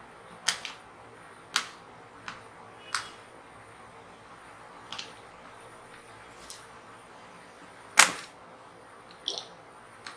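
A hand taps and knocks on a hard plastic case.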